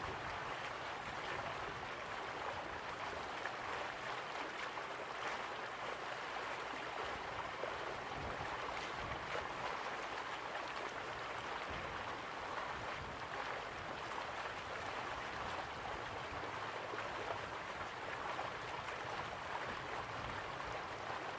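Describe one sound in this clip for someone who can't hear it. Waterfalls pour and splash steadily in the distance.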